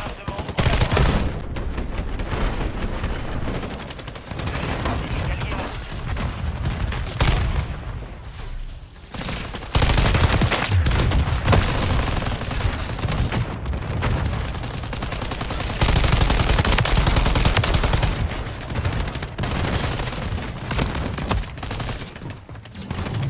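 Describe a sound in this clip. Rapid gunfire rattles and booms in bursts.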